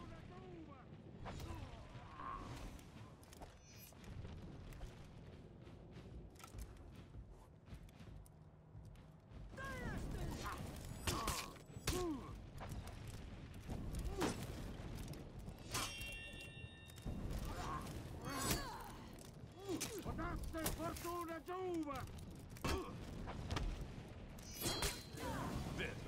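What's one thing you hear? Metal blades clash and strike in a sword fight.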